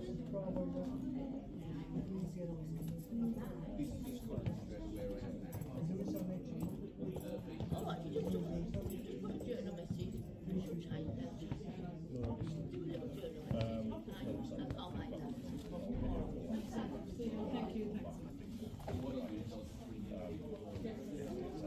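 Several men talk calmly nearby in an echoing room.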